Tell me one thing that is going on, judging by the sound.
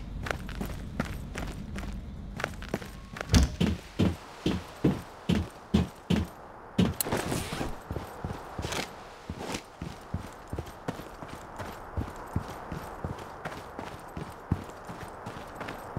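Footsteps thud at a quick, steady pace.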